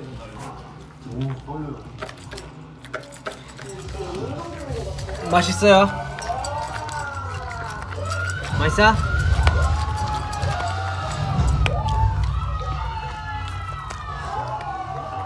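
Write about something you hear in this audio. A dog crunches dry food close by.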